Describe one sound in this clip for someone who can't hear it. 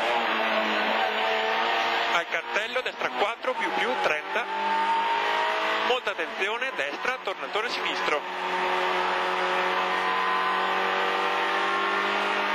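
A rally car engine pulls hard under load, heard from inside the cabin.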